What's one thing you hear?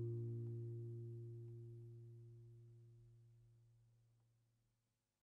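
A final guitar chord rings out and slowly fades away.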